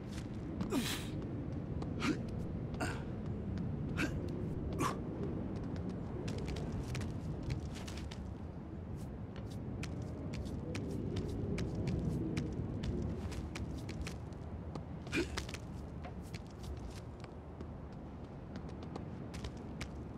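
Quick footsteps tap and thud across a rooftop.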